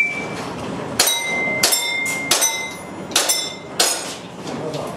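A pistol fires a rapid series of sharp clicking shots indoors.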